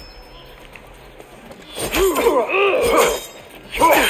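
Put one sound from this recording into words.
Blades swing and clang in a close fight.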